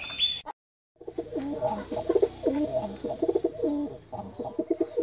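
Pigeons flap their wings as they take off.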